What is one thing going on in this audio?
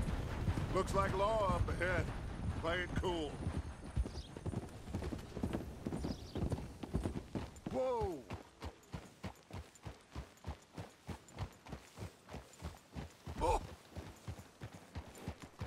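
Horse hooves clop steadily on a dirt track.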